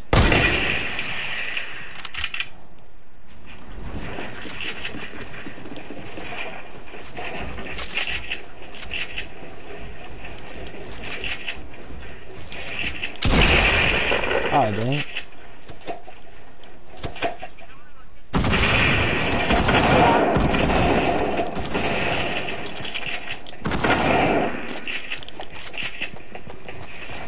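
Footsteps thump on wooden planks.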